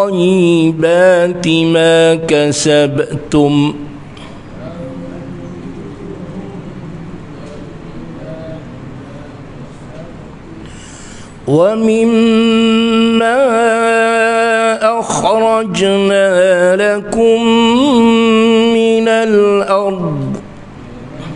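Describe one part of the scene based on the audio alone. A man chants melodically into a microphone, in long held phrases.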